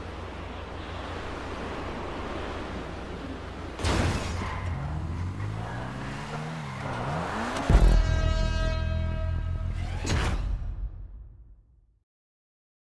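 A race car engine hums and revs, then fades away.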